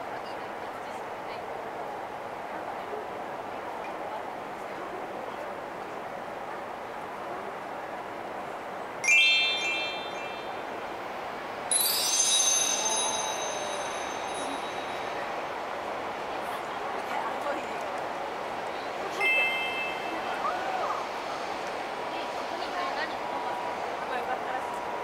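A crowd murmurs softly nearby outdoors.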